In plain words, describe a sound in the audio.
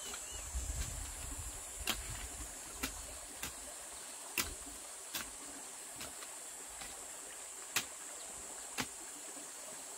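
Clods of dirt thud and scrape as a person digs in the ground by hand.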